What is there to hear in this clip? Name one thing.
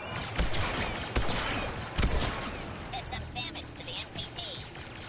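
Loud gunshots boom one after another, echoing briefly.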